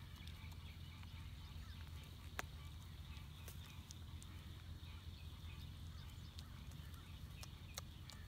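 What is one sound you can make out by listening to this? A young goat chews and crunches on grass up close.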